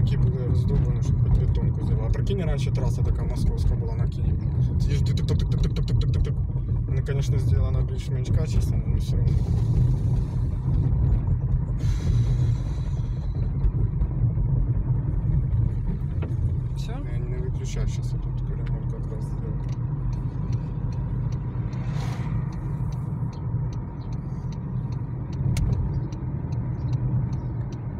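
Tyres rumble and rattle over a rough road.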